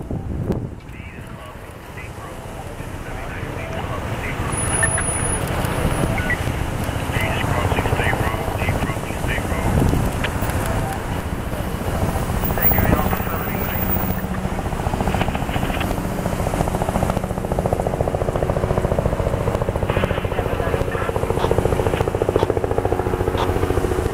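Vehicles drive past close by in a steady stream.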